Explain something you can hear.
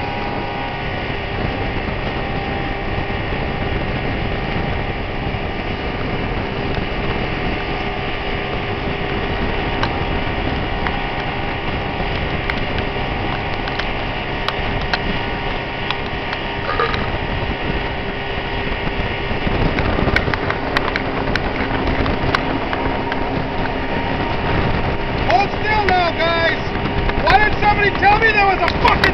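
Wind buffets the microphone outdoors.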